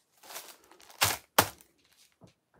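A plastic-wrapped package is set down on a table with a soft crinkle.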